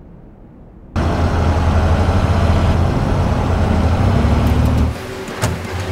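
Vehicle engines roar as trucks drive over dirt.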